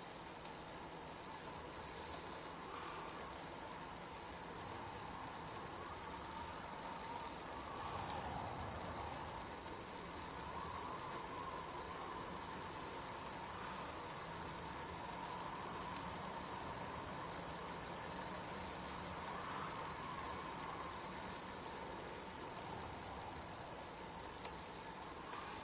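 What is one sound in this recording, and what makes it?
Bicycle wheels whir steadily on a road.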